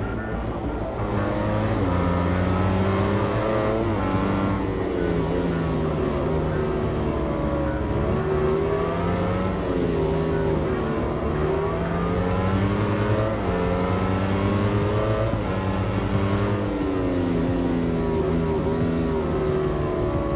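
A single motorcycle engine screams, its pitch rising and falling through the gears.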